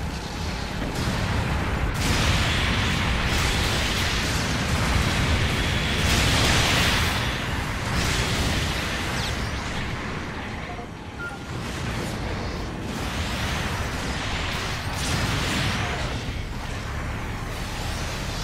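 Beam weapons fire with sharp zaps.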